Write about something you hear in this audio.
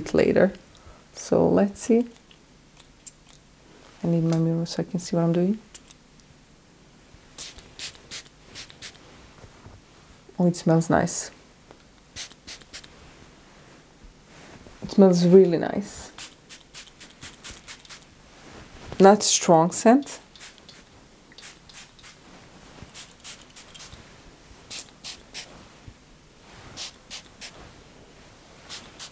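A spray bottle hisses in short puffs.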